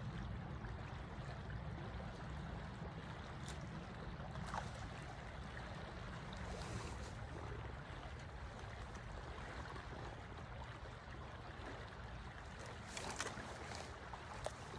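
A shallow stream rushes and burbles steadily nearby.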